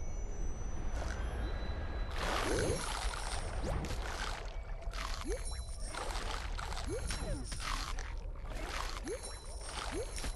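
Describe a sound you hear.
A low underwater rumble drones on steadily.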